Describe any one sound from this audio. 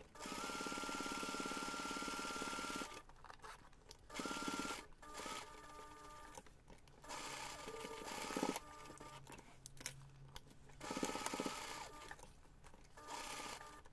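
A sewing machine stitches in quick bursts with a steady mechanical whir.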